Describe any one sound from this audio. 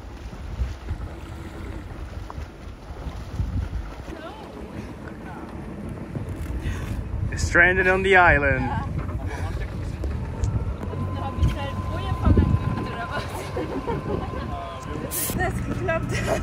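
Water laps against the boat's hull.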